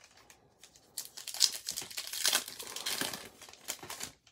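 A foil wrapper crinkles and rustles.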